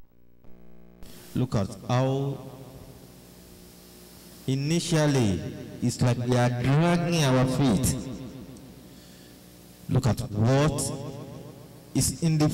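A man preaches with feeling into a microphone, heard through a loudspeaker.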